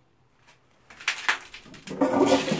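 A toilet flush lever clicks as it is pressed.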